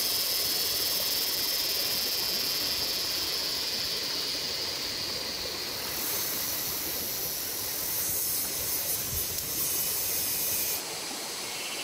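A wood fire crackles and roars.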